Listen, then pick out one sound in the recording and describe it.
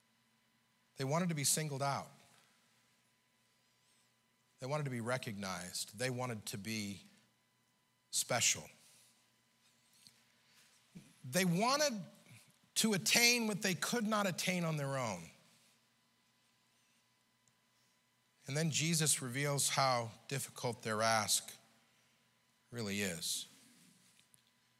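An elderly man preaches through a microphone in short, emphatic phrases, with pauses between them.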